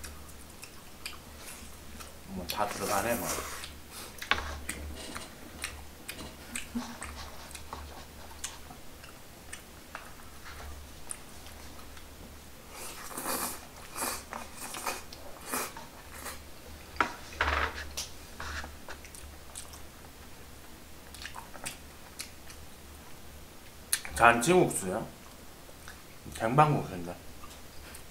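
Chopsticks click against dishes.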